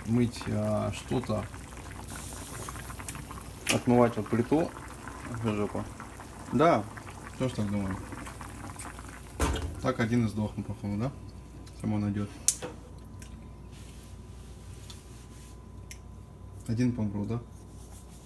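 Water bubbles at a rolling boil in a pan.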